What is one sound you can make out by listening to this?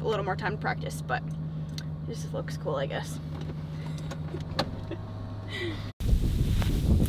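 A car engine hums steadily inside a car.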